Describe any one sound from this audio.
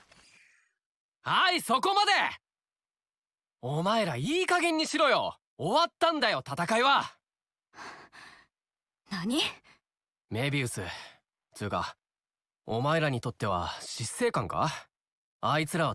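A young man speaks firmly.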